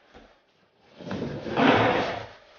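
A skateboard grinds along a metal edge.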